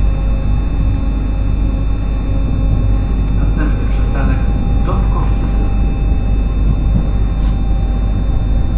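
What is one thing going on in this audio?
A train rumbles steadily along the tracks, with a low, even roar.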